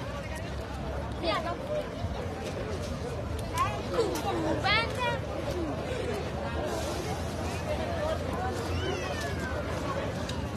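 People in a crowd cheer.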